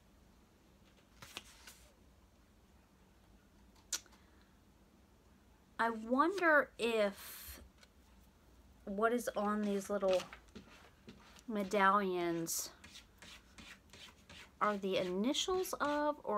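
Paper rustles as a card is handled.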